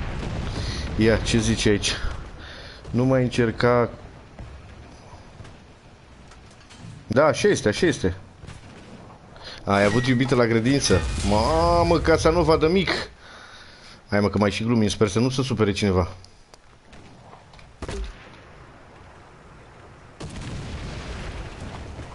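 Shells explode nearby with a loud boom.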